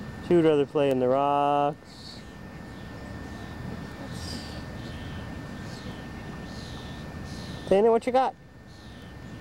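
A toddler babbles briefly close by.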